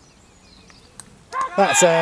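A cricket bat knocks a ball.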